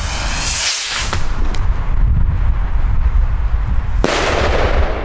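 A firework rocket whooshes up into the sky.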